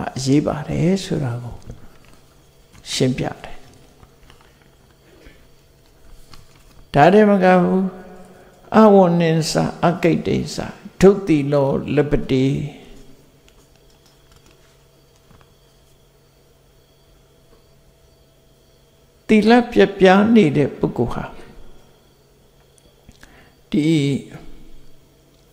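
An elderly man speaks calmly into a microphone, pausing between phrases.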